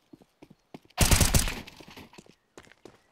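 An assault rifle fires a burst of shots.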